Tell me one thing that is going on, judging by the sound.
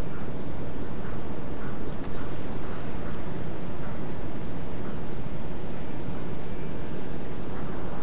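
Waves wash against a boat's bow as the boat moves through the sea.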